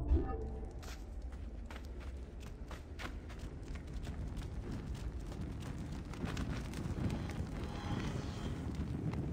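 Footsteps scuff steadily on a stone floor.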